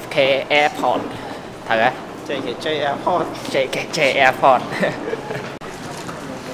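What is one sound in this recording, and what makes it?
A young man talks and laughs cheerfully close by.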